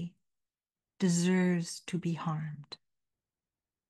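An elderly woman speaks calmly and close into a microphone.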